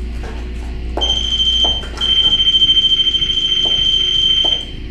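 An electronic device gives off a steady high-pitched tone.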